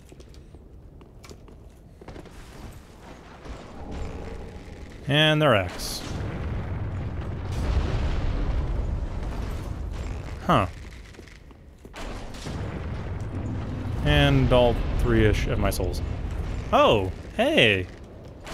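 Armoured footsteps clatter over stone and wooden planks.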